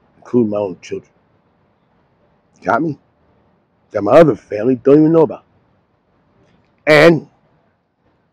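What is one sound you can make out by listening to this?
An elderly man speaks calmly and close into a clip-on microphone, in short phrases with pauses.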